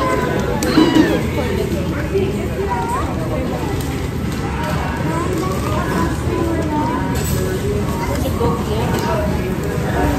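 A steady murmur of voices and clatter fills a busy room.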